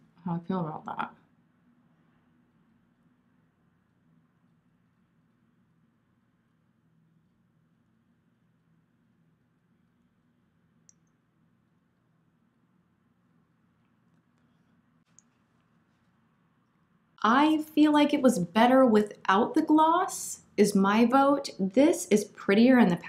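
A woman speaks calmly and closely into a microphone.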